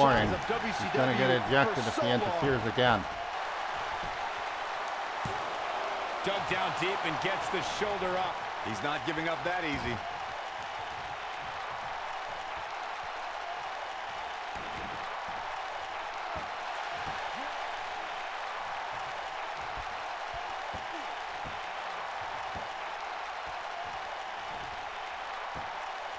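A large crowd roars steadily.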